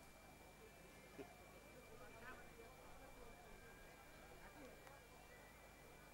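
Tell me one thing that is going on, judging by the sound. A crowd of men murmurs and chatters nearby.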